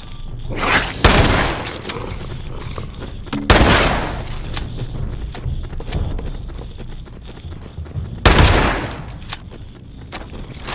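A shotgun fires loud blasts that echo and roar away.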